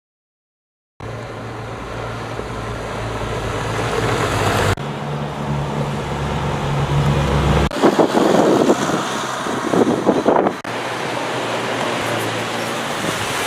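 A utility vehicle's engine rumbles as it drives along a gravel road.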